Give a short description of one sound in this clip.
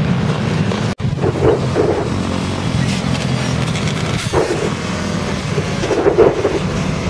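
Motorcycles and quad bikes roar along a road.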